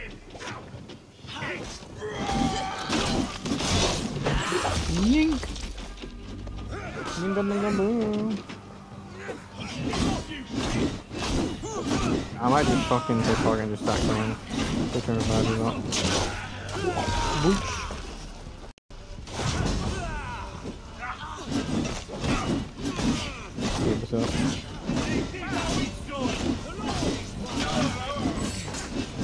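Blades clash and slash in rapid combat.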